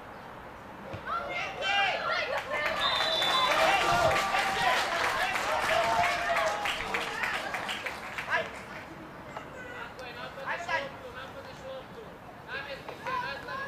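Young players shout and call to each other outdoors on an open field.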